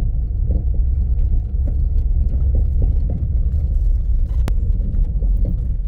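A vehicle drives along a rough dirt track, heard from inside.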